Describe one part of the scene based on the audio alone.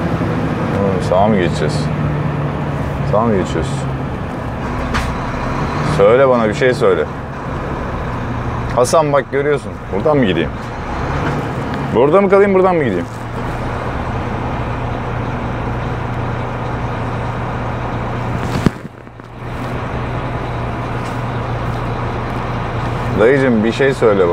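A man talks calmly in short bursts, close by.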